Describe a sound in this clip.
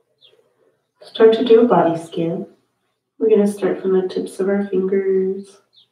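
A woman speaks calmly and softly into a close microphone.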